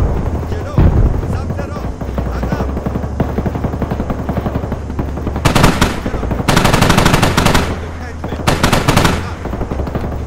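Large flames roar and crackle steadily.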